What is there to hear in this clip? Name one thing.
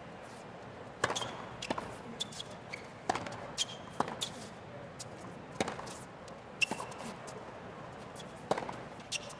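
Tennis balls are struck hard with rackets, back and forth.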